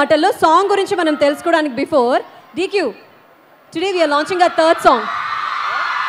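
A young woman speaks with animation through a microphone in a large hall.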